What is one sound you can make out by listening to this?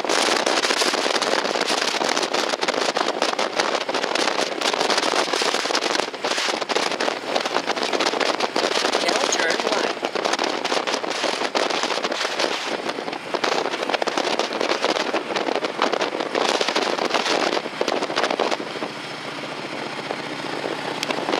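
Wind and road noise rush loudly past a moving car.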